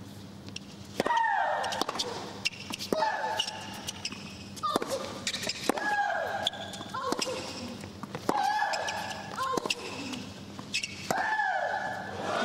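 A tennis ball is struck hard back and forth.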